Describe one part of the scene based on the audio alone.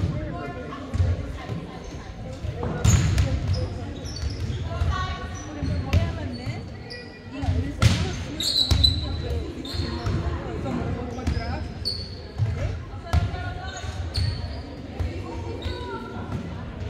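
Girls and young women chatter and call out across a large echoing gym.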